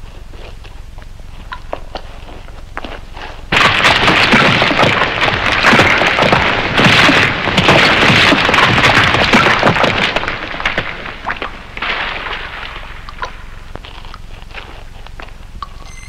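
Footsteps crunch on loose rock.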